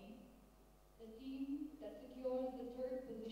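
A young woman speaks calmly into a microphone over a loudspeaker.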